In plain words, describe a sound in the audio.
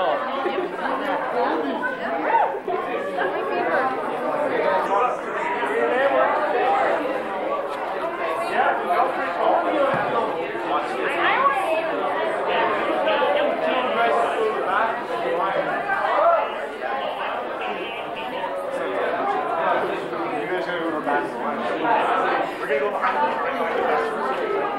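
A crowd of young men and women chatter loudly all around in an echoing room.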